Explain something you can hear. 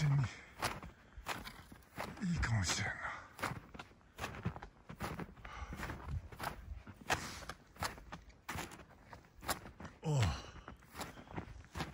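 Footsteps crunch on deep snow.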